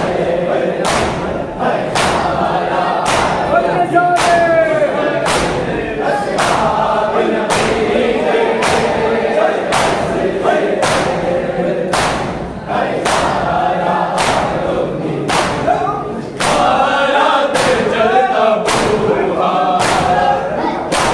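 A large crowd of men beat their chests in a steady rhythm with loud slaps.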